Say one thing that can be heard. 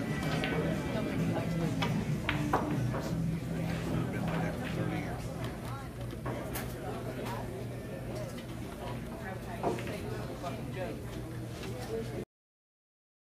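A crowd of men and women chatters in the background of a busy room.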